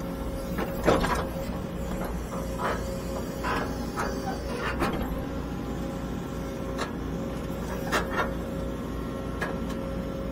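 Metal clanks and knocks as an excavator arm and bucket move.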